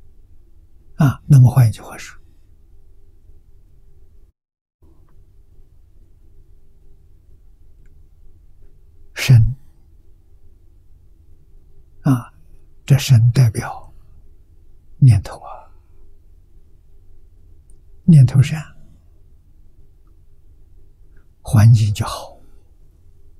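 An elderly man speaks slowly and calmly into a microphone, in short phrases with long pauses.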